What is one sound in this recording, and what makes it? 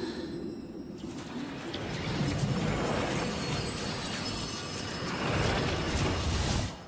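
Glass shatters and shards tinkle through the water.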